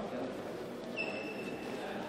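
Sports shoes squeak on the court floor.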